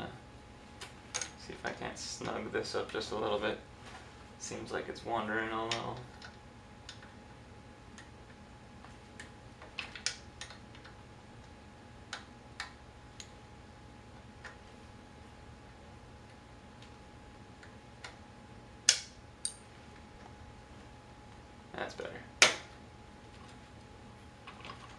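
A metal tool clicks and taps against a wheel.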